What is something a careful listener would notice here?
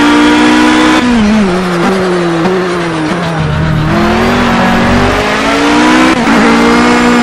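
A racing car engine winds down as the car brakes, then revs up again.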